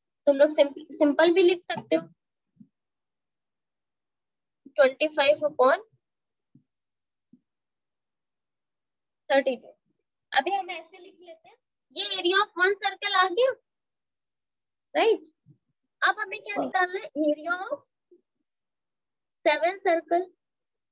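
A woman explains calmly over a microphone, in short bursts with pauses.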